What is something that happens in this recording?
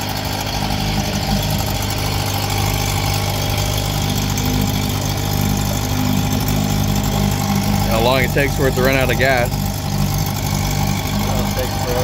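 An old outboard motor idles with a steady, loud rumbling putter.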